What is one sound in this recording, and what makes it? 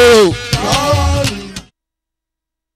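A crowd of men sings loudly.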